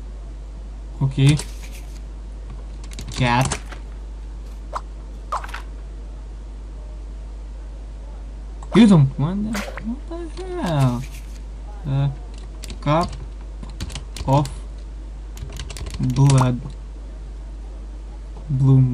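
A young man talks casually into a close microphone, in short bursts.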